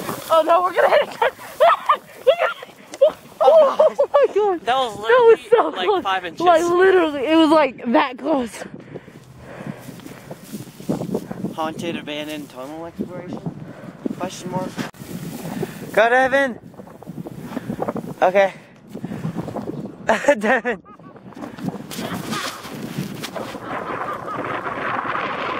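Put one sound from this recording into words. A sled scrapes over frozen grass.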